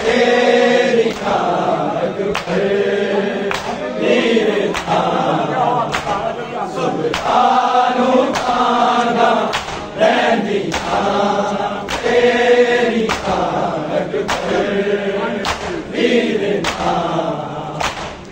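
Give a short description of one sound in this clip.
A crowd of men chants loudly together.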